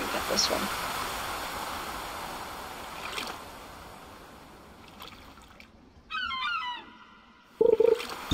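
Small waves lap softly at a shore.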